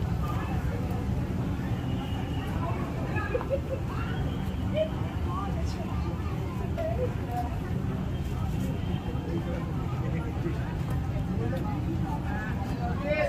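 A crowd of people chatters in the distance.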